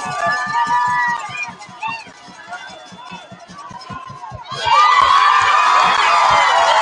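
A large crowd cheers and shouts outdoors, swelling into a loud roar.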